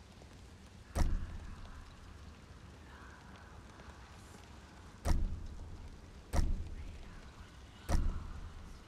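A short, sharp interface click sounds a few times.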